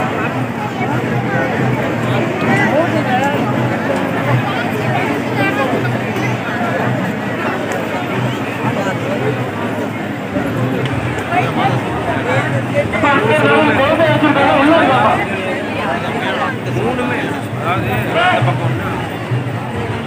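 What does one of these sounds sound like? A large crowd chatters and murmurs loudly outdoors.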